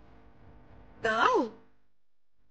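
A middle-aged woman exclaims with animation.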